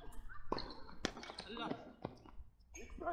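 Tennis rackets strike a ball with sharp pops.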